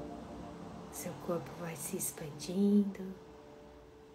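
A woman speaks softly and calmly, close by.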